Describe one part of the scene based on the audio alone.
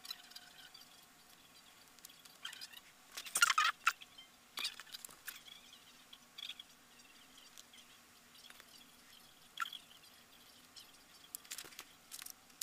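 Fabric rustles and crinkles as hands handle it.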